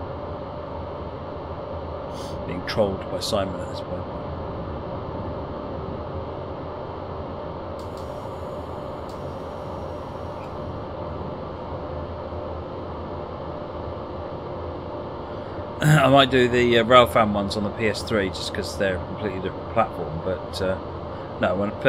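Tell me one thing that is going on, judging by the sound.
A train engine hums steadily as it rolls along the rails.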